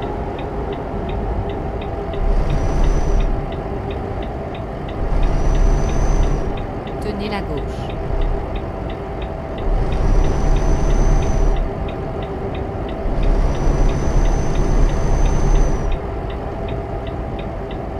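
A turn signal ticks rapidly and evenly.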